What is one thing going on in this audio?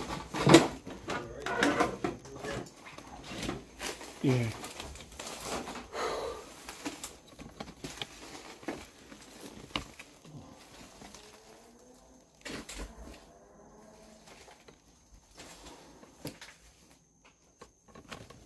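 Footsteps crunch over broken debris on a hard floor.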